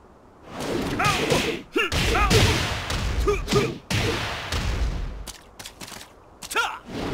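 A man shouts with effort in short bursts.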